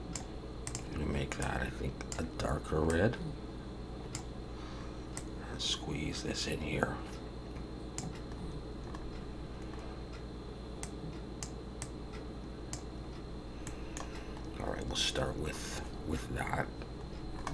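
A man talks calmly and close into a microphone, in short bursts.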